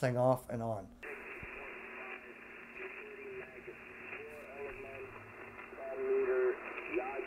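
Static hisses steadily from a radio loudspeaker.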